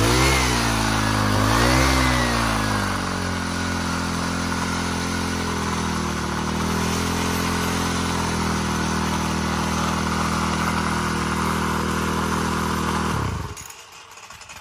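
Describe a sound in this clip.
A small two-stroke engine idles loudly close by, revving up twice before settling and then cutting out.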